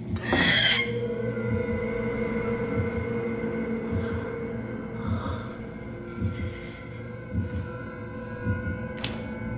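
Dull knocks thud at a slow, uneven pace.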